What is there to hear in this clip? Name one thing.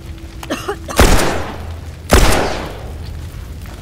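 A pistol fires two loud shots that echo.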